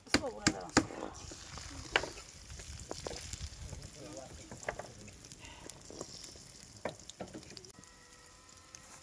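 Eggs sizzle in a frying pan.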